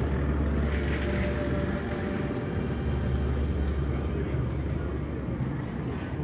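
A crowd chatters nearby.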